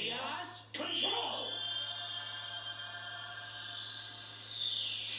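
A magical burst flares with a bright, shimmering rush.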